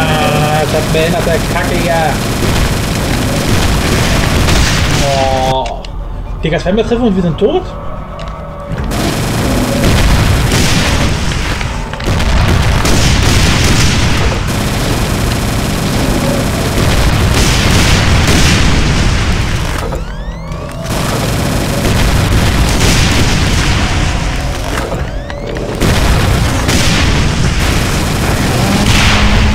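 Plasma guns fire in rapid bursts with crackling bursts of energy.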